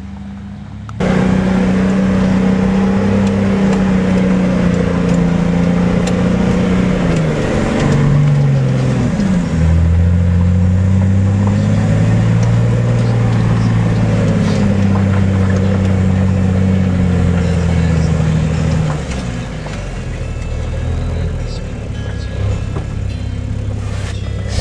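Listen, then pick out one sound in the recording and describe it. Tyres rumble over a rough track.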